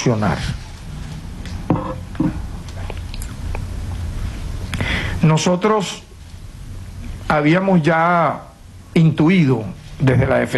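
A man speaks formally into a microphone, with pauses.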